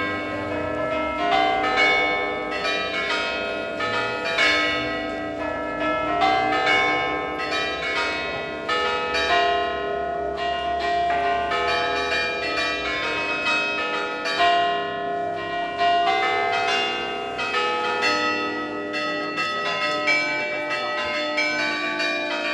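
Church bells ring out loudly in a steady peal, each stroke ringing on.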